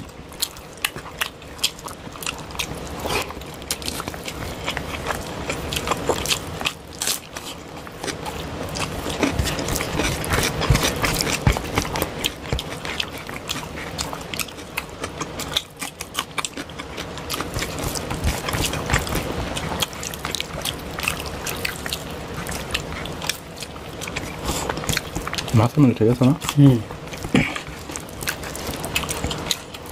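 Two men chew loudly and smack their lips up close.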